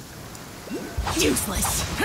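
A burst of magic crackles and whooshes loudly.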